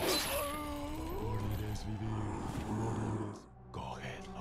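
A man's body falls to the floor with a thud.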